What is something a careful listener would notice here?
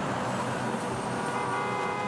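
A truck roars past on a highway.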